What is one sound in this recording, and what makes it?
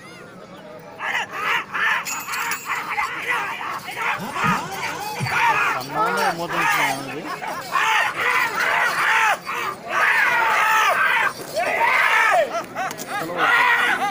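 A crowd of men shouts and cheers outdoors.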